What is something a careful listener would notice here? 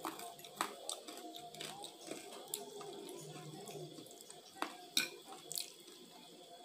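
Forks clink against plates.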